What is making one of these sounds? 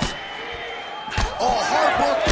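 A kick lands with a heavy thud.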